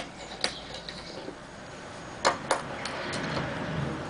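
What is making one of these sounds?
An Allen key clicks and scrapes against a metal screw.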